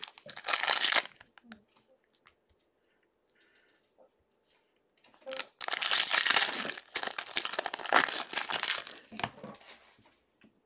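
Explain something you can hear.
Cards rustle and slide against each other as they are handled up close.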